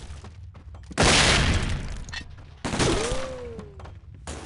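A smoke grenade bursts with a loud hiss.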